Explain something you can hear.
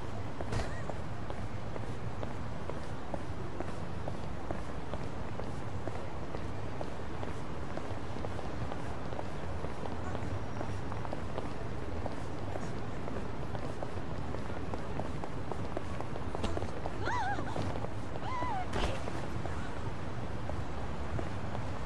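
City traffic hums steadily in the background.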